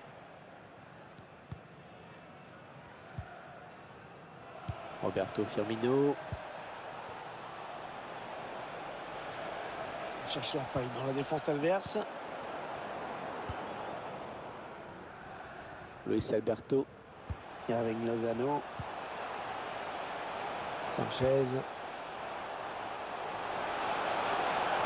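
A stadium crowd murmurs and roars, swelling toward the end.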